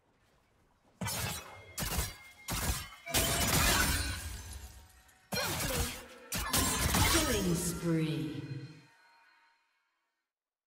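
Magic spells crackle and blast in a video game fight.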